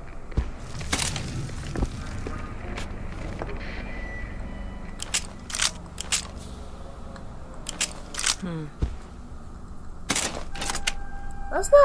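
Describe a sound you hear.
Metal clicks and clatters as a gun is handled.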